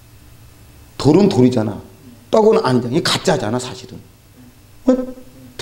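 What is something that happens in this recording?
A middle-aged man speaks emphatically into a microphone.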